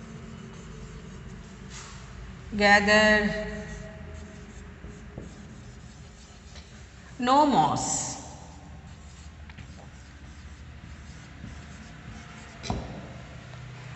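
A marker scratches on a whiteboard.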